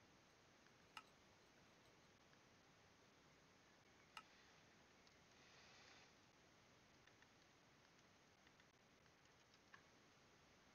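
A game menu button clicks softly a few times.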